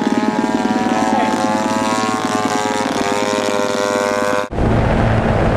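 A model airplane engine whines steadily nearby.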